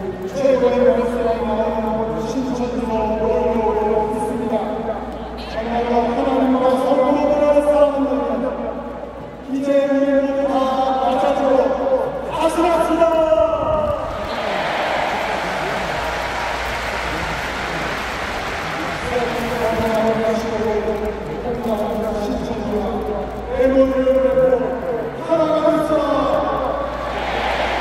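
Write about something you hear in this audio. A large crowd of men sings together in unison, echoing across a vast open stadium.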